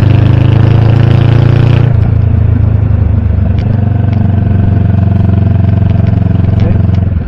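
A motorcycle engine rumbles steadily close by, easing off briefly and then pulling again.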